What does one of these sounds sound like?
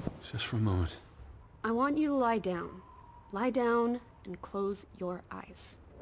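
A young woman speaks quietly and wearily.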